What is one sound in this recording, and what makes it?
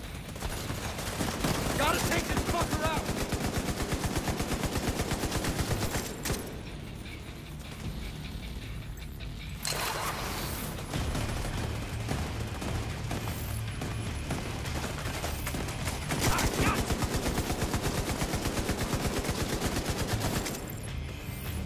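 Automatic guns fire in rapid bursts close by.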